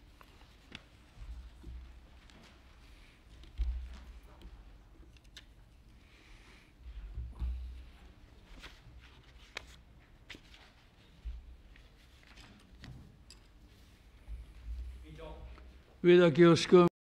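Papers rustle and chairs shift as people move about the room.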